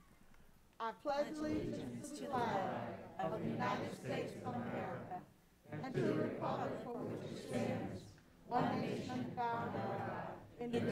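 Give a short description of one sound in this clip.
A crowd of people recites together in unison, heard through a room microphone.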